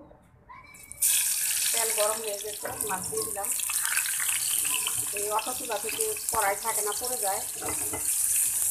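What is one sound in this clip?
Fish sizzles and crackles loudly in hot oil.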